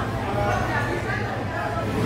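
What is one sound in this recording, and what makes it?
A whisk stirs through thick sauce in a metal pot.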